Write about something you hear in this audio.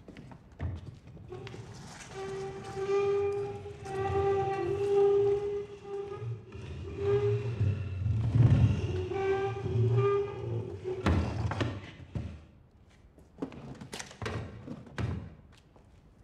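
A heavy wooden chair scrapes and bumps across a hard floor.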